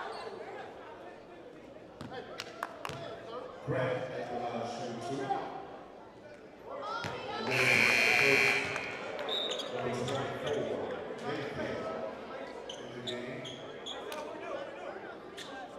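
A crowd cheers in a large echoing gym.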